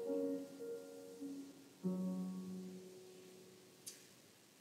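A piano plays a few soft chords that ring out and fade.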